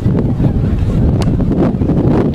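A rugby ball is kicked with a dull thump.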